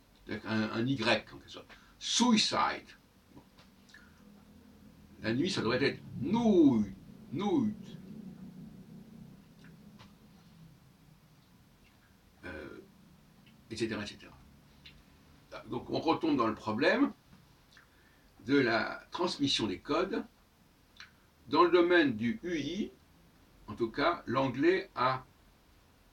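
An elderly man speaks calmly close by, with long pauses between phrases.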